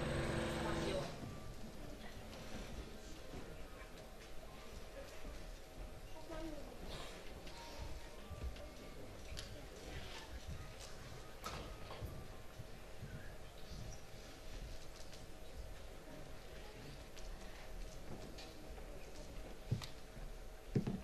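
A dancer's body slides and thumps softly on a wooden floor.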